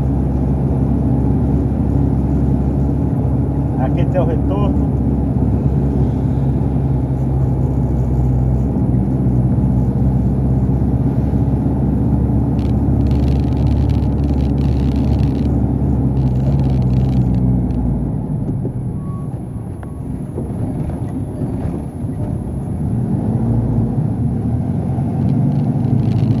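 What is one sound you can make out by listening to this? A truck engine rumbles steadily from inside the cab as it drives along a road.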